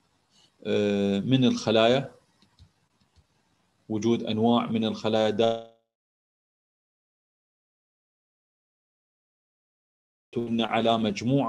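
A man speaks calmly over an online call, in bursts with pauses.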